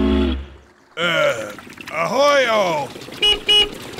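A man speaks with animation in a cartoonish voice.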